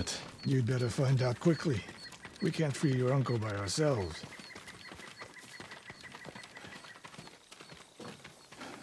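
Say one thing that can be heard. Footsteps tread softly on a dirt path.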